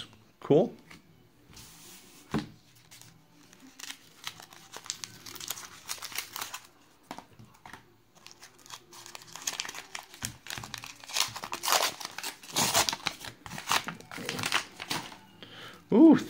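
Paper rustles and crinkles as it is unfolded and torn open.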